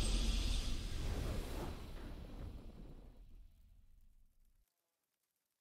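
A triumphant game fanfare rings out and slowly fades away.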